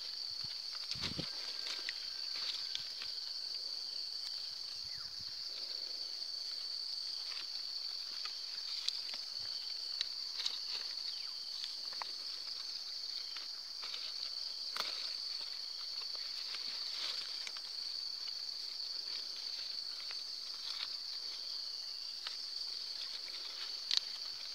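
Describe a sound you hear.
Plastic grafting tape crinkles.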